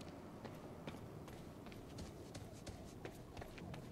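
Footsteps run quickly over pavement.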